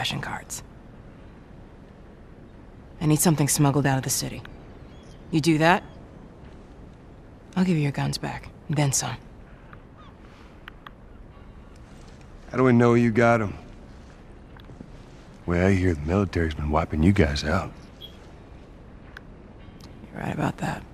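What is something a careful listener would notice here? A woman speaks calmly and seriously, close by.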